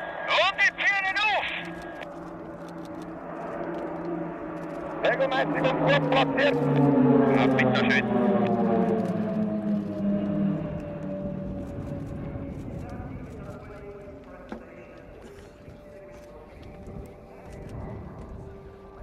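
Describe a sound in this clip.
Propeller plane engines drone overhead, rising and falling in pitch as a formation passes.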